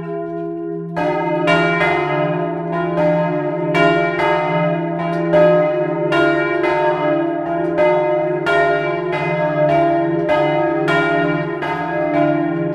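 A second, higher bell joins in and the ringing becomes faster and denser.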